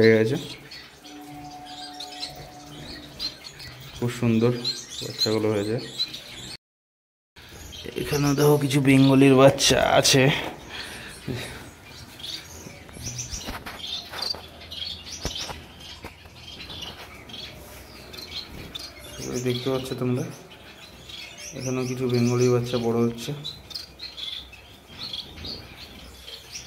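Baby birds cheep faintly and rapidly.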